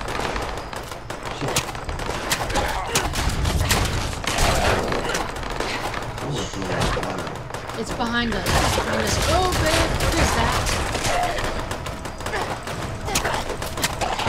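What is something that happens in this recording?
A creature snarls and screeches as it attacks.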